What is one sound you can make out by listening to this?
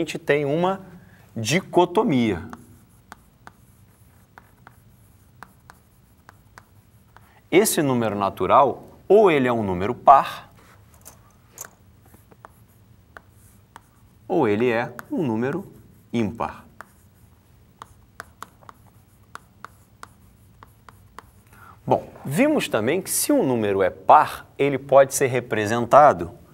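A man speaks calmly, pausing between phrases.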